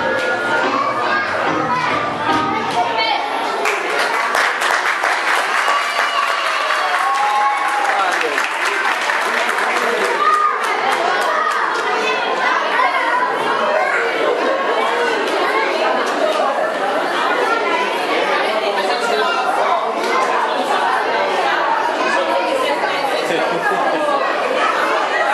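A crowd of adults and children chatters in an echoing hall.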